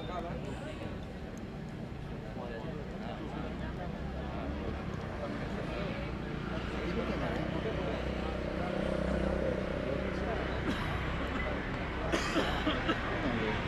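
A crowd of spectators chatters in the distance outdoors.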